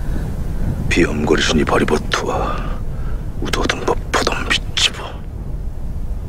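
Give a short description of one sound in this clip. A man speaks slowly and tensely, close by.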